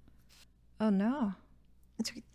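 A young woman speaks cheerfully into a close microphone.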